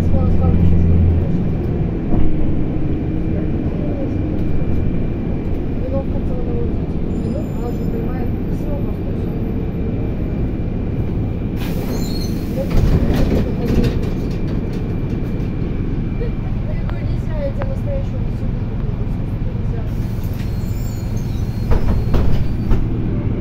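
A bus engine rumbles steadily from inside.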